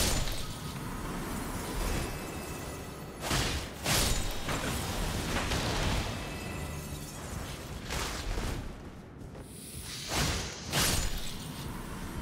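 Sword blows clash and thud in combat.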